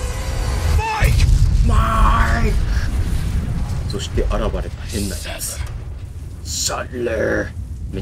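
A huge fireball roars.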